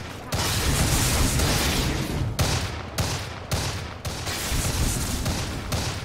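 Fantasy battle sound effects clash and burst with magic blasts.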